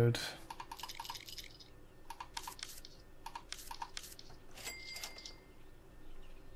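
Coins clink in a cash drawer.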